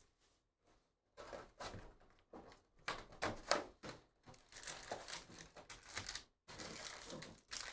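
A cardboard box is pulled open.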